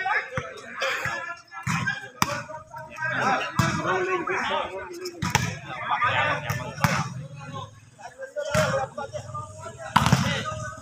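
Several young men talk and call out loudly outdoors, close by.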